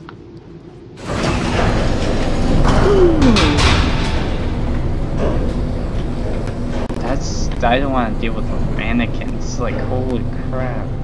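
An elevator hums and rumbles as it moves.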